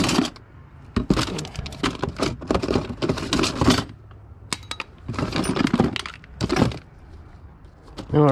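A plastic bag crinkles as it is handled.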